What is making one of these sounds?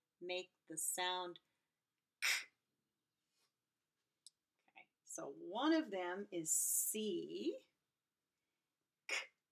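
A woman speaks clearly and slowly close to a microphone, as if teaching.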